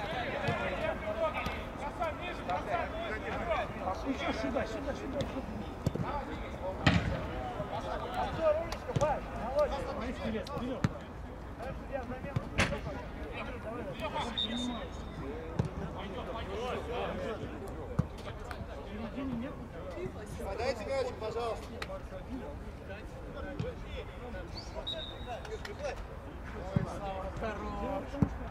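Men shout and call out to each other across an open field outdoors.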